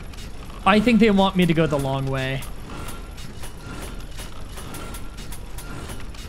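Metal gears click softly into place.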